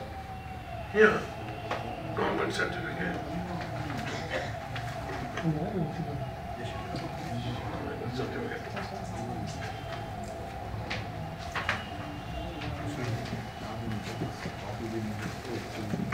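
Papers rustle and shuffle on a desk.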